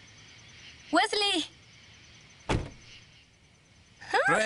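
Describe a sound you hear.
A young woman shouts out.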